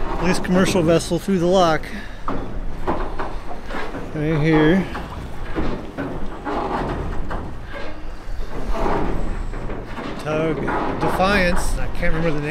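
Wind blows outdoors across open water.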